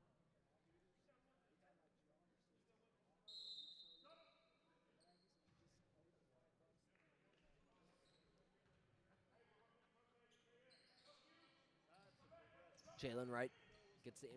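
Spectators talk and call out in a large echoing gym.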